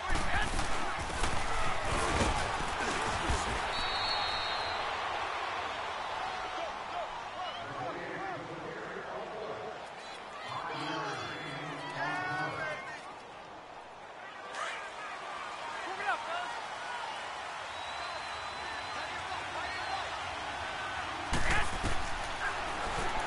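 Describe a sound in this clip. A large crowd roars in a stadium.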